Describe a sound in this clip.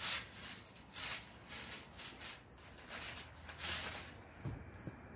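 A trampoline creaks and thumps as someone bounces on it.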